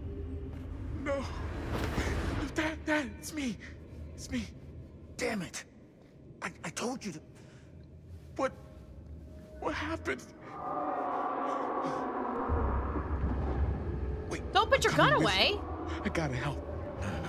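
A young man shouts in panic.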